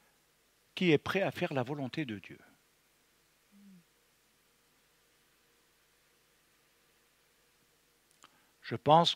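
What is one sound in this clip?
An elderly man speaks calmly into a close microphone, with pauses.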